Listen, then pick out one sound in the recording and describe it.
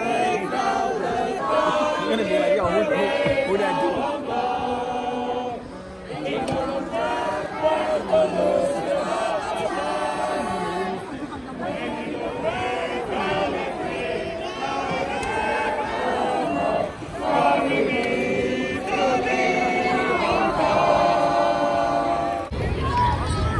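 A large crowd of men and women sings together in a big echoing hall.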